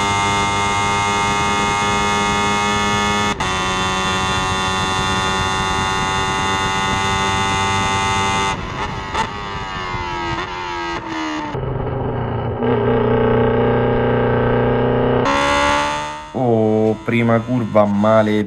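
A racing car engine screams loudly close by, its pitch rising and dropping with gear changes.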